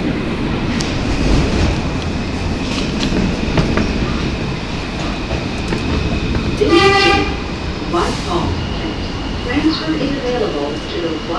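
A subway train rumbles and rattles along the tracks.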